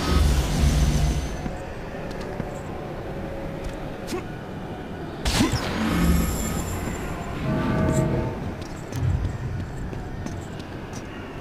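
A glowing portal hums and swirls.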